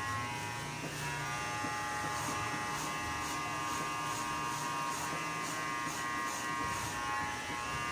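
Scissors snip rapidly through hair close by.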